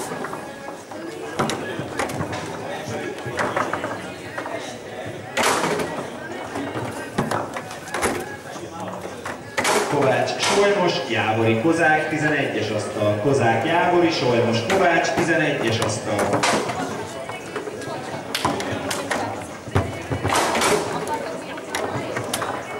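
Foosball rods clack and the ball knocks sharply against the table.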